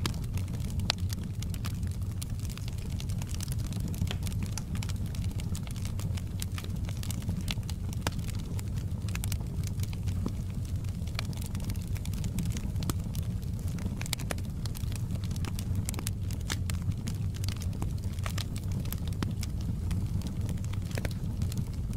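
Burning logs crackle and pop sharply.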